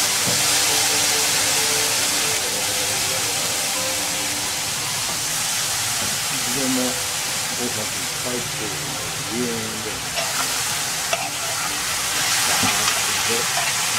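Vegetables sizzle steadily in hot oil.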